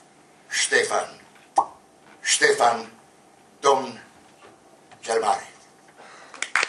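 An elderly man speaks in short phrases through a microphone.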